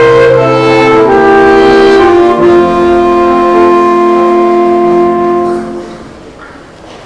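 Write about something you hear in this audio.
Saxophones play a slow melody together in a large hall.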